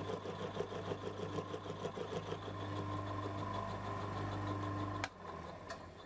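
A milling machine's cutter grinds loudly into metal.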